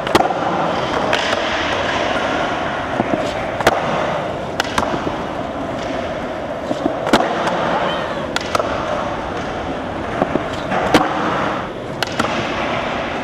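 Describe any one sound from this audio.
A skateboard deck snaps and clacks sharply as it hits the ground, in a large echoing hall.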